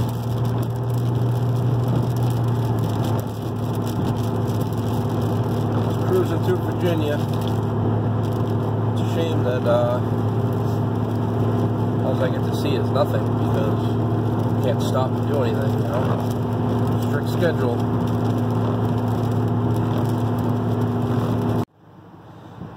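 Tyres roll on a wet road with a steady rush.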